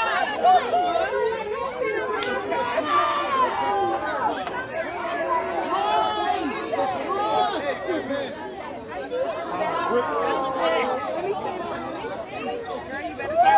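Several women talk and call out with emotion close by, outdoors.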